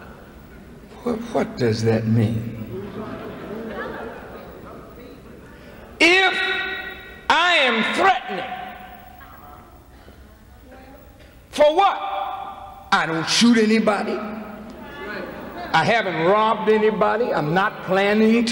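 A middle-aged man speaks forcefully into a microphone, his voice echoing in a large hall.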